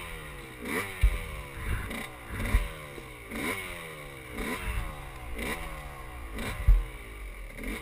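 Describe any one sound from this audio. A dirt bike's frame thumps and rattles over rough ground.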